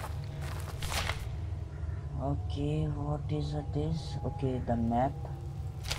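A sheet of paper rustles as it is handled.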